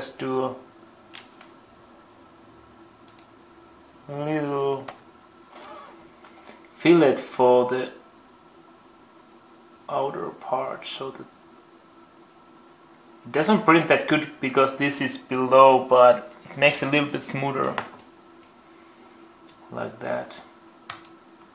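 A man talks calmly and close by, in short bursts.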